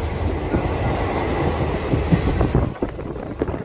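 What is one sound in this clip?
A heavy truck rumbles past close by.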